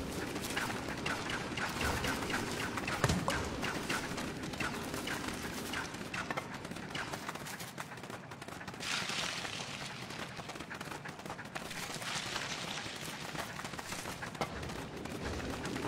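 A small fire crackles.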